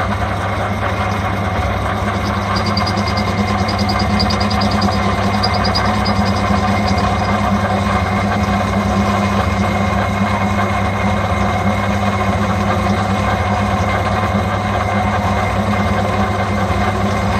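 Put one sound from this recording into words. A metal lathe hums and whirs steadily as its spindle turns.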